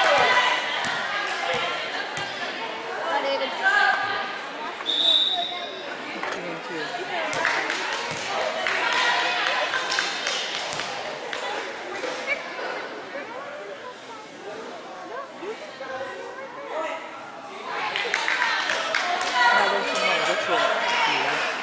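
A crowd of children and adults chatters and calls out in a large echoing gym.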